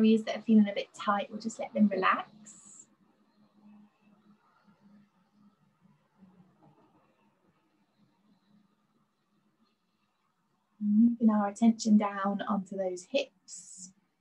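A young woman speaks calmly and softly through a microphone, with pauses.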